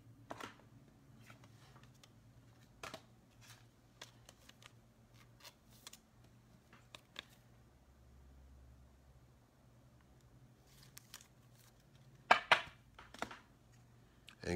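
Cards rustle and tap against each other as a hand handles them.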